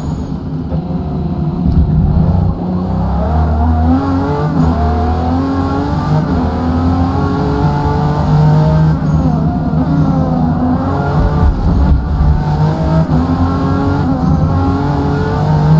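A car engine roars, revving up and down through gear changes.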